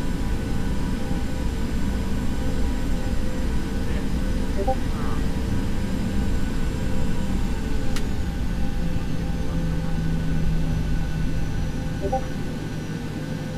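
Tyres rumble over a runway.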